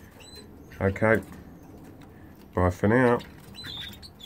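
A canary trills loudly in short bursts.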